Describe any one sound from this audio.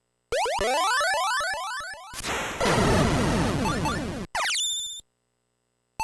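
Electronic game sound effects chirp and zap.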